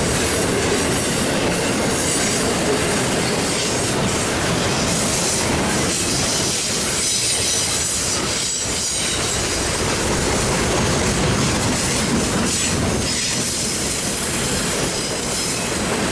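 A long freight train rumbles past close by, its wheels clattering and squealing on the rails.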